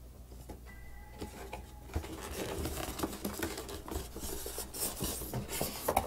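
Cardboard packaging rustles and scrapes as a box is opened.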